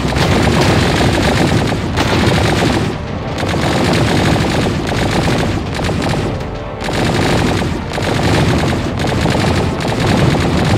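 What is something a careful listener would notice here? Rapid laser guns fire in bursts.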